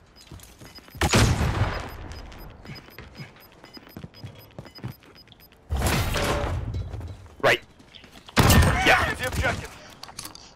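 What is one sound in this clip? A shotgun fires loud, booming blasts that echo briefly.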